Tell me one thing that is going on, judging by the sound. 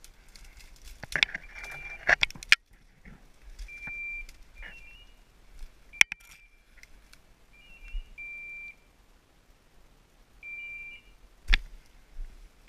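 Twigs snap and branches brush close by.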